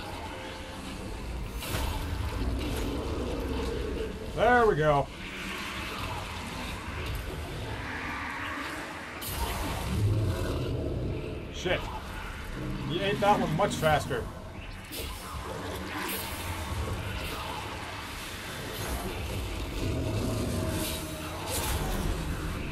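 Arrows whoosh and strike.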